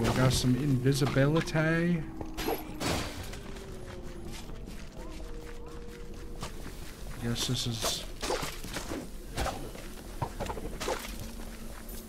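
Swords swing and strike with sharp hits in a video game.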